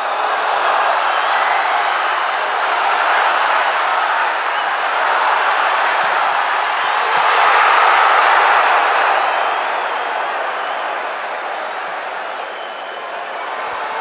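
A large crowd cheers and roars loudly in a stadium.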